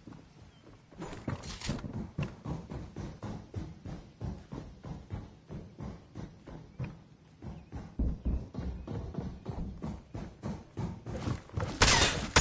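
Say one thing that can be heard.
Footsteps run quickly up hard stairs.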